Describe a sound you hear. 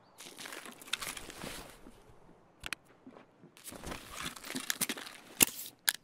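Gear rustles and clicks as equipment is handled.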